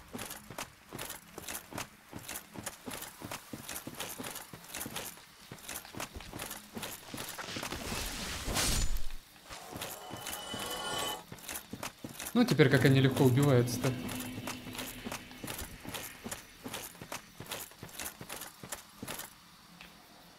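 Armored footsteps clank steadily on the ground.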